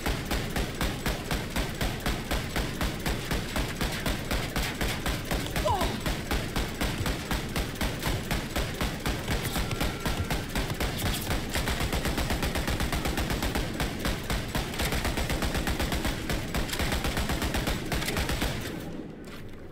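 A machine gun fires in rapid, steady bursts.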